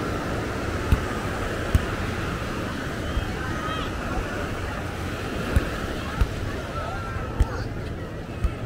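Waves wash gently onto the shore.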